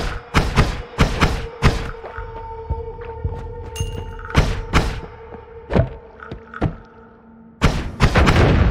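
Game laser shots zap rapidly.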